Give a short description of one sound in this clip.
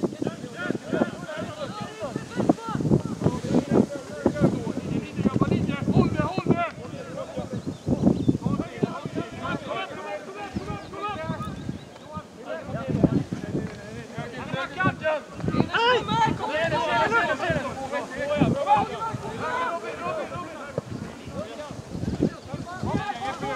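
Young players shout to each other across an open field outdoors.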